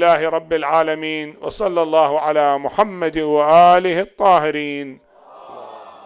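An elderly man chants loudly through a microphone in an echoing hall.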